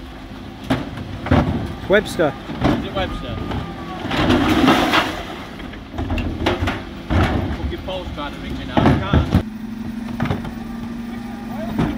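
Wheelie bin wheels rumble over wet tarmac.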